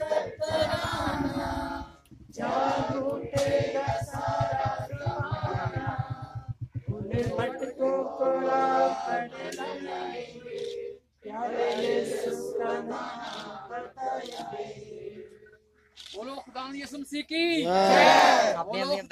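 A group of men and women chant together loudly outdoors.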